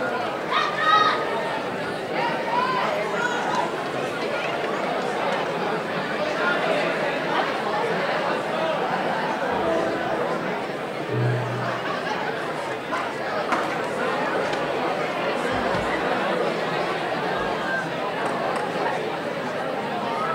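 A rock band plays loudly in a large echoing hall.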